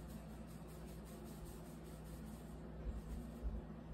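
Hands knead dough in a bowl.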